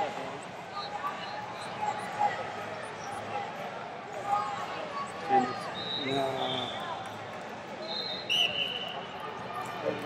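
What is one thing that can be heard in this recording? A crowd murmurs and chatters in a large echoing arena.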